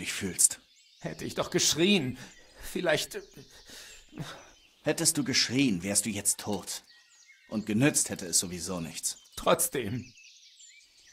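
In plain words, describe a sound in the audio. A young man answers in a low, regretful voice.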